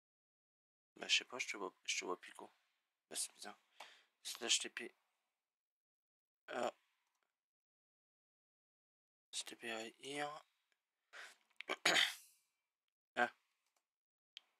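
A young man talks into a close microphone in short bursts.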